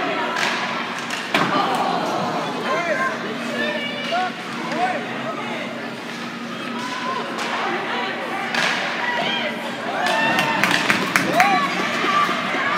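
A crowd of spectators chatters and calls out nearby in a large echoing arena.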